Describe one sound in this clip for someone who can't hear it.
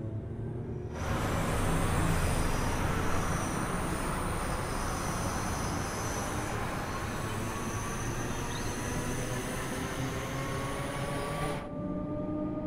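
A passing train rushes by with a loud roar of rushing air.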